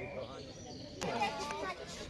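A golf club taps a ball.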